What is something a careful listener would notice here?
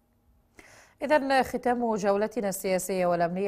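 A woman reads out the news calmly into a microphone.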